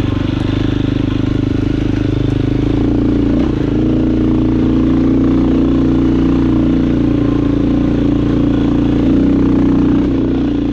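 Tyres crunch over dirt and rocks.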